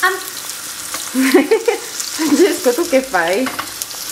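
Metal tongs scrape and clack against a frying pan.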